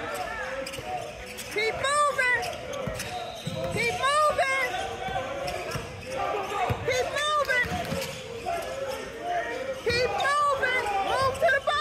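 Sneakers squeak sharply on a hardwood court, echoing in a large gym.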